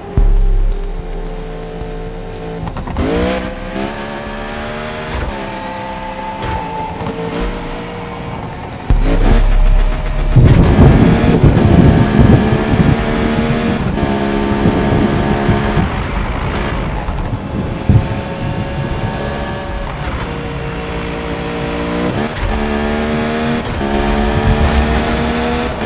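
A car engine roars and revs up and down through the gears.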